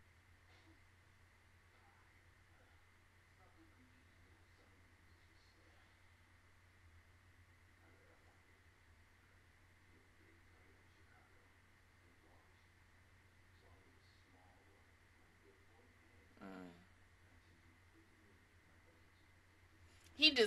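A young woman speaks softly and close into a microphone.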